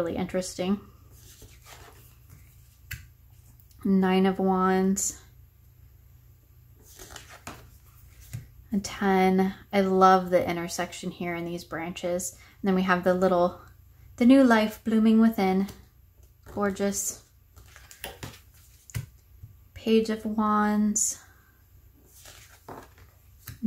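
A playing card slides and taps softly on a wooden table.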